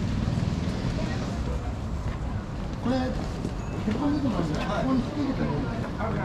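A crowd of people murmurs nearby outdoors.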